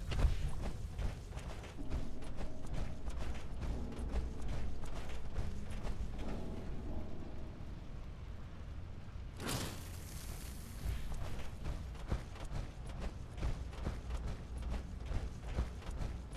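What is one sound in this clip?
Footsteps thud on a hard floor at a steady walking pace.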